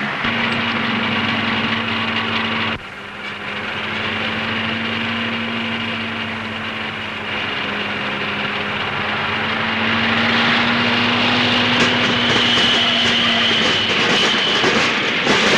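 A truck engine roars loudly.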